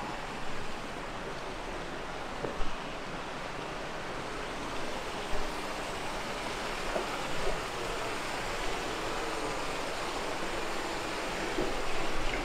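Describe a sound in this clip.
Footsteps thud on a wooden footbridge.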